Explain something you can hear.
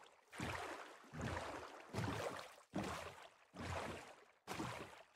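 Water splashes in regular strokes as someone swims.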